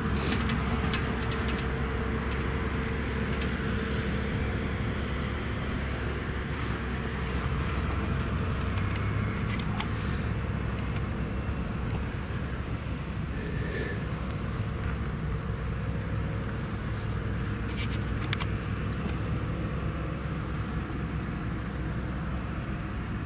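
A tractor engine rumbles steadily at a distance.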